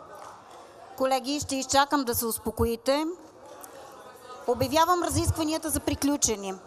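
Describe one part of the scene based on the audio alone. A woman speaks formally into a microphone.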